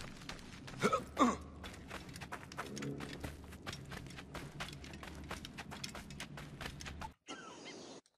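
Footsteps patter quickly over rough ground.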